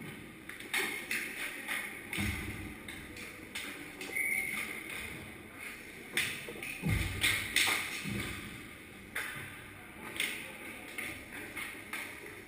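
Hockey sticks clatter and pucks knock against the ice and boards.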